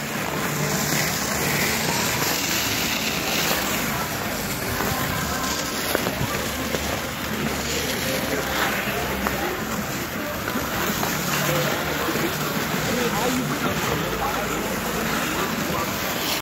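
A plastic skating aid scrapes across ice.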